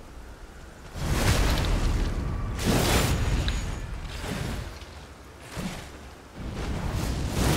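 Heavy blows crash and thud.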